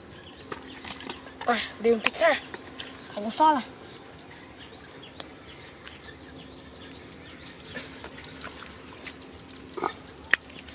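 Wet mud squelches as hands dig into it.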